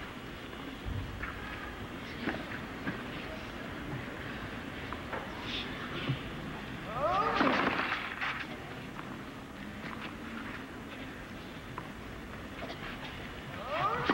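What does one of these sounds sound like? A tennis ball bounces on a clay court.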